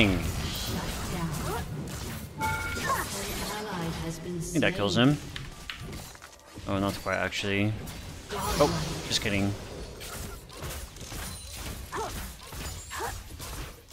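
Video game combat effects of clashing blades and spells play.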